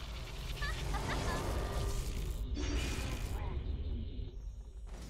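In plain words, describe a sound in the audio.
A magic spell whooshes and crackles loudly.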